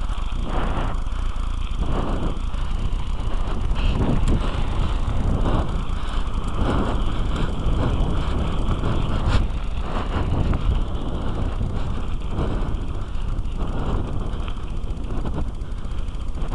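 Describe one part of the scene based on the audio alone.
Wind rumbles and buffets against a microphone outdoors.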